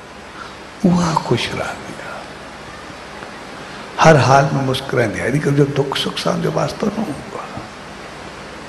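A middle-aged man speaks with feeling into a microphone, in short bursts with pauses.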